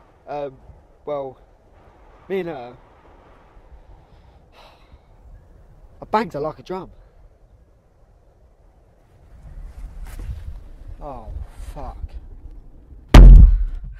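A young man speaks tensely up close.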